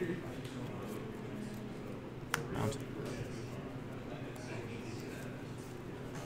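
Playing cards rustle as they are shuffled in hand.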